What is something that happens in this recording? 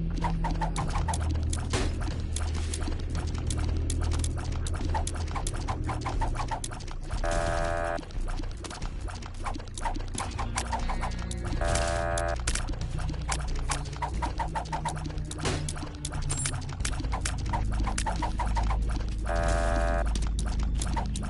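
Small projectiles pop and splat rapidly in a video game.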